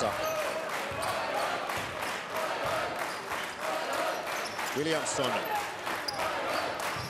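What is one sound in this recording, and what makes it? A basketball bounces in steady thumps as a player dribbles.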